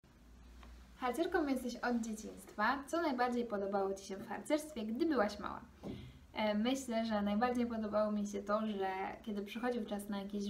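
A young woman speaks calmly and warmly, close to a microphone.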